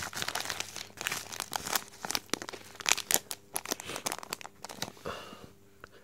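A plastic wrapper crinkles and rustles in someone's hands.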